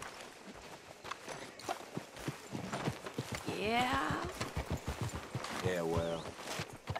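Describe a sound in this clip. Horse hooves thud quickly on dirt.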